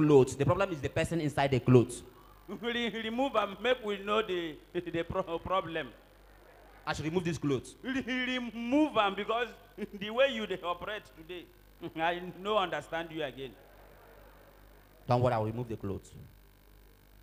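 A second man answers through a microphone in a lively voice.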